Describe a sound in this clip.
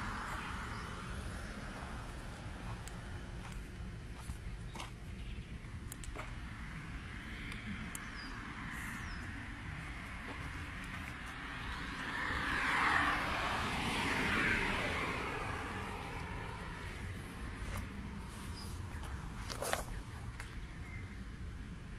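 Footsteps crunch on dry dirt and gravel.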